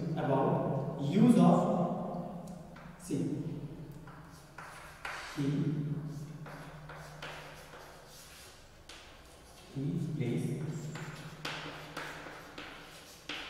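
A man speaks slowly and clearly, like a teacher, in a slightly echoing room.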